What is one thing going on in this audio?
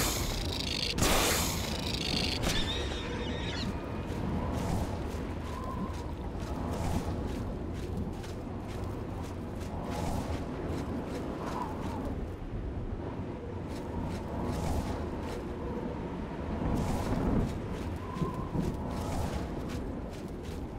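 Lava bubbles and rumbles steadily.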